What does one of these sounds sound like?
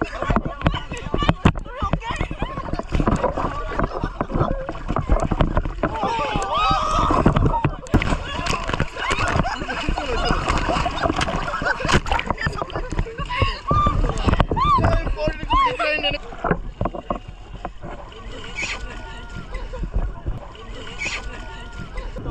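Water splashes and churns close by.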